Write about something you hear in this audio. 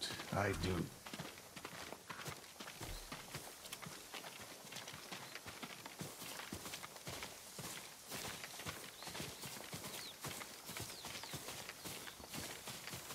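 Footsteps rustle through grass and dirt at a walking pace.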